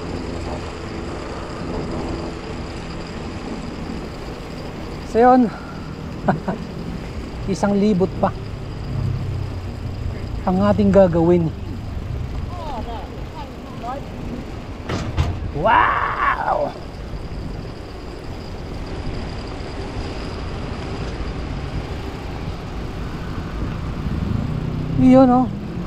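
A bicycle rolls steadily along a paved path.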